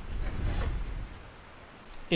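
A waterfall rushes and splashes.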